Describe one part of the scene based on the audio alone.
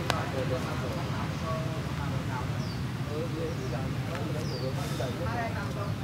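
A young man talks calmly nearby, outdoors.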